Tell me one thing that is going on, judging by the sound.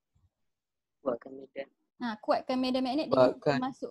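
A woman speaks calmly, as if teaching, through a microphone on an online call.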